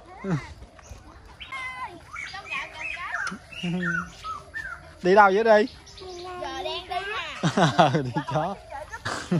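Young children talk and call out excitedly nearby.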